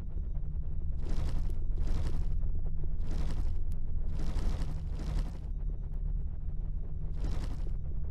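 Menu selection sounds click and swoosh at intervals.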